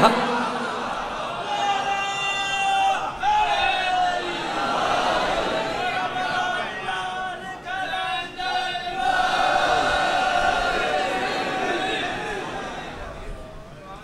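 A man recites with feeling through a microphone in a reverberant space.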